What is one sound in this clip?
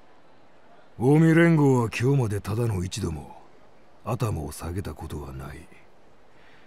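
A man speaks in a deep, stern voice, close by.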